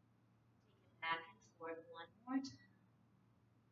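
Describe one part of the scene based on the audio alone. A woman speaks a few calm words close by.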